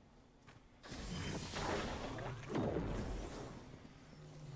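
Energy blasts and explosions burst loudly.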